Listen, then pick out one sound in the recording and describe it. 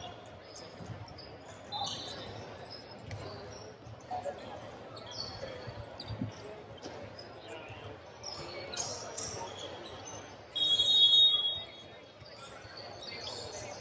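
Sneakers squeak on a hardwood court in a large echoing hall.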